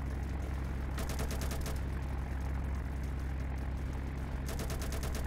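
A plane's machine guns fire in rapid bursts.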